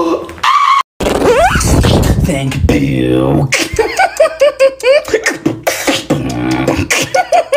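A young man beatboxes with fast clicks and hums close by.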